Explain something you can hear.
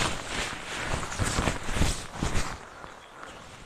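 Wind blows and buffets outdoors.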